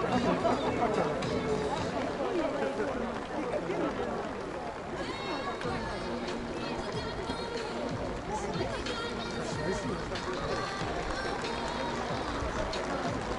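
A large crowd murmurs and chatters across an open stadium.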